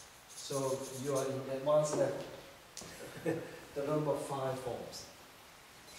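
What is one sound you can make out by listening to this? A man speaks calmly, nearby.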